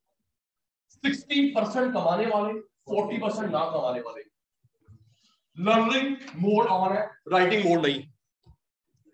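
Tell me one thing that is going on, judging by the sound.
A man speaks through a close microphone in a steady lecturing voice.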